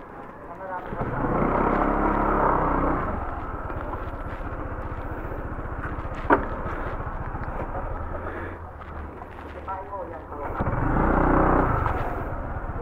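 A motorcycle engine revs up and settles back a few times.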